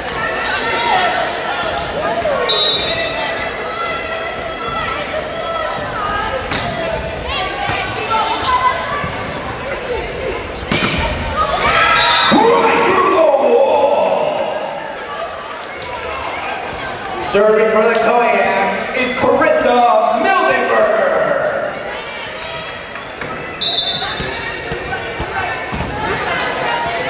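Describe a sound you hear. Young women shout and cheer in a large echoing gym.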